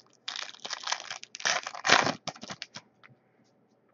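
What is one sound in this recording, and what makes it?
Plastic wrapping crinkles and rustles as hands tear it open.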